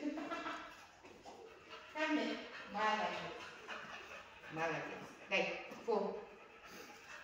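A woman talks to a dog in a high, cheerful voice.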